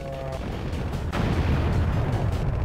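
A large explosion roars loudly.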